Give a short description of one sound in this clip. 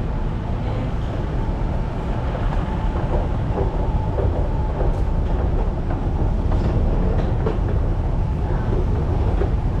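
An escalator hums and rumbles steadily close by.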